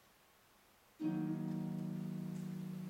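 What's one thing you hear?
A harp plays in a large echoing hall.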